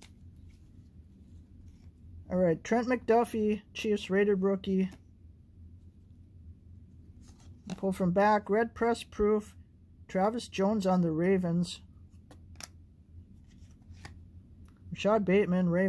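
Plastic card sleeves rustle and click as hands handle them.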